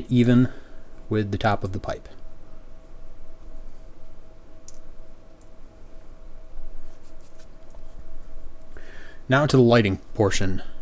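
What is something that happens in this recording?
Fingers crumble and press tobacco into a pipe with a soft rustle.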